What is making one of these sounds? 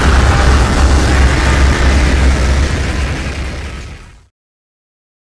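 A laser beam fires with a loud buzzing roar.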